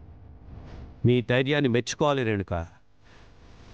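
A man speaks firmly and with emotion, close by.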